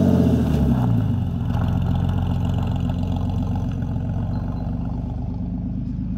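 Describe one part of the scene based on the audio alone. A sports car drives off over gravel, its engine fading into the distance.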